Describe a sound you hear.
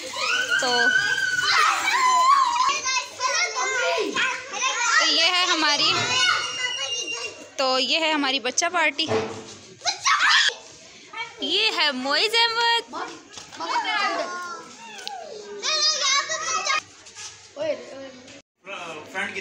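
Young children shout and squeal excitedly close by.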